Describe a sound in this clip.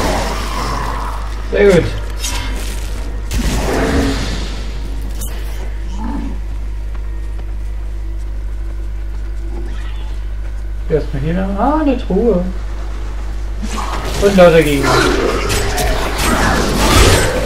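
Fiery spells burst and crackle in a game battle.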